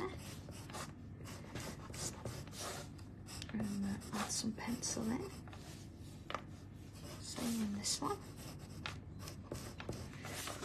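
A pencil scratches and rubs on paper.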